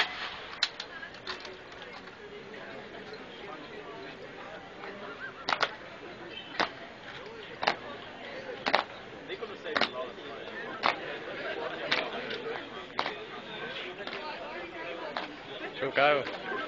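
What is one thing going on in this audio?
A crowd murmurs outdoors in the background.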